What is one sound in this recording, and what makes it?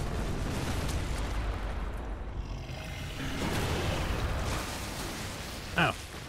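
A deep, heavy rumbling of a giant creature stomping and crashing.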